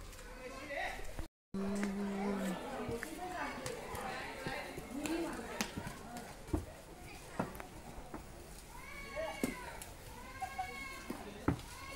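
Bare feet shuffle along the pavement.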